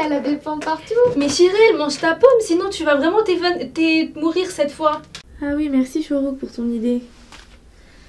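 A young woman talks and laughs cheerfully nearby.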